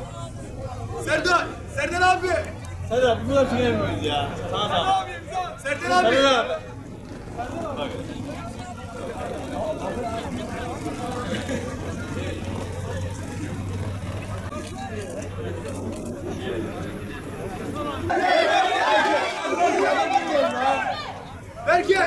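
A crowd of fans chants and cheers outdoors.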